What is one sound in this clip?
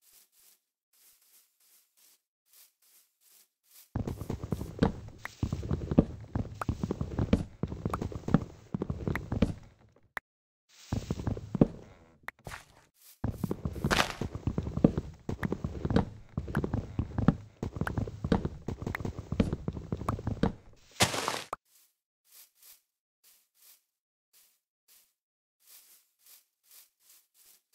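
Footsteps pad softly on grass.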